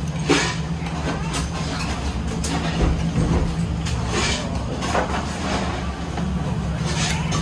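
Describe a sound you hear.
A metal fork clicks against cockle shells and a plate.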